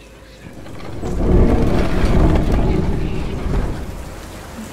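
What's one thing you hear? A heavy wooden door creaks and rumbles open.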